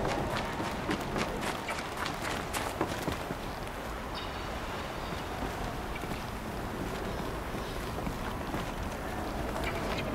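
Footsteps crunch over rough, rocky ground.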